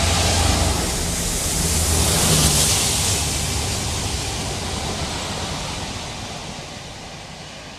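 Train wheels clatter over the rails as the wagons roll past.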